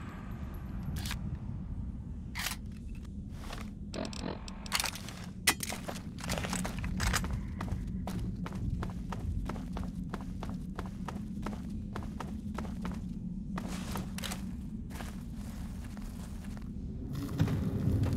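Footsteps crunch steadily over rough ground in an echoing cave.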